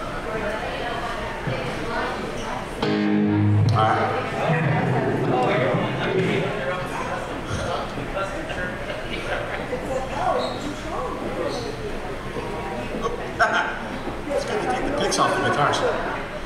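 A bass guitar plays a low line.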